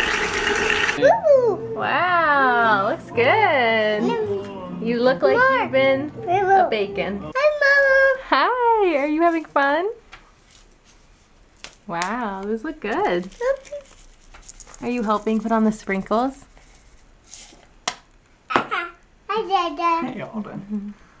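A young child babbles and chatters close by.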